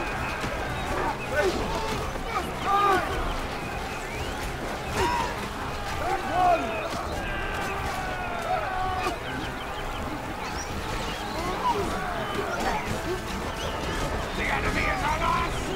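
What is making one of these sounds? Swords clash and clang in a fierce battle.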